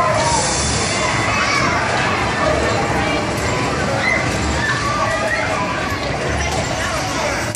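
A crowd of children and adults chatters in a busy, noisy room.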